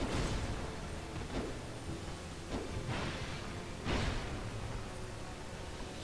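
A heavy blade strikes with a metallic clang.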